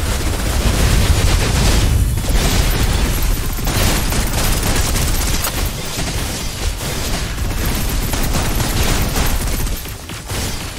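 Explosions boom with deep rumbling.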